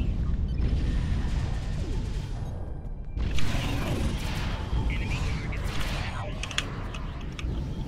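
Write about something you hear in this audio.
Energy weapons fire in short bursts.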